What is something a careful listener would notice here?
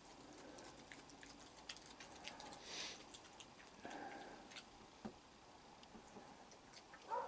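A raccoon crunches and munches on dry food up close.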